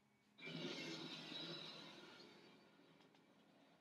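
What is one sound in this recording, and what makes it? A deep roaring blast booms from a television speaker and slowly fades.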